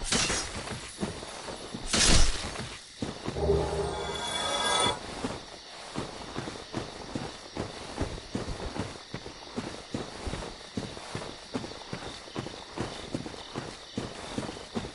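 Armored footsteps crunch steadily through grass and leaves.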